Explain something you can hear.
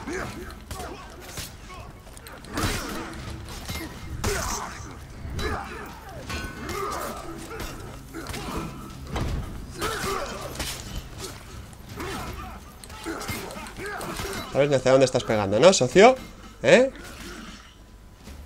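Steel blades clash and clang in a fierce fight.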